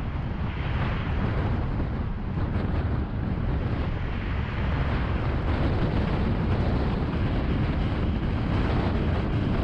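Passing traffic whooshes by.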